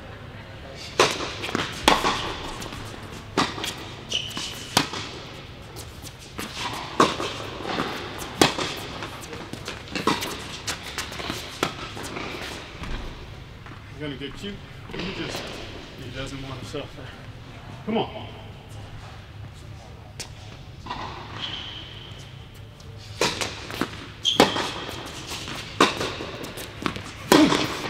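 Tennis balls are struck sharply by rackets, echoing in a large indoor hall.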